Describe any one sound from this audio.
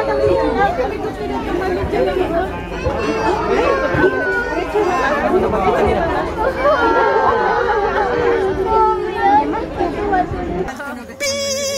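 Goats bleat close by.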